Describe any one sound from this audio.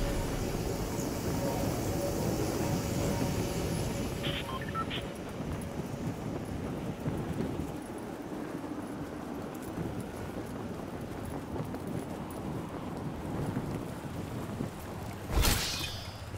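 Wind rushes steadily past a gliding game character.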